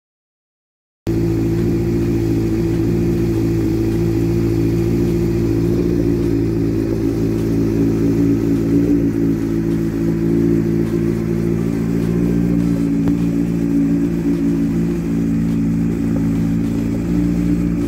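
A motorcycle engine idles with a steady, deep rumble.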